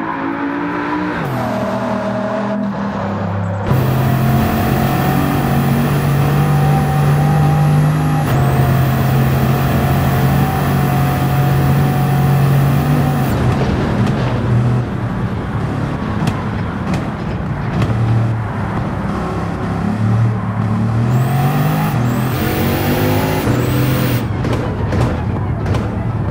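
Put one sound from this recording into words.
A W16 quad-turbo hypercar engine roars at full throttle, shifting up through the gears.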